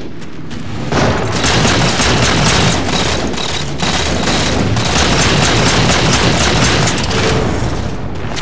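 Rapid gunfire rattles with loud electronic blasts.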